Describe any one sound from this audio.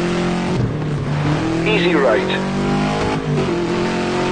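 A rally car engine briefly drops in pitch as it shifts up a gear.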